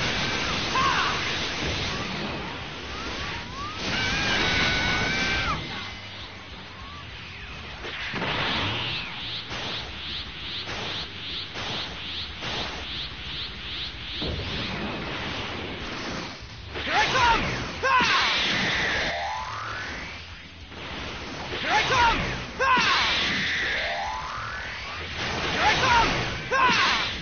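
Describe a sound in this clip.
Energy blasts whoosh and boom in quick bursts.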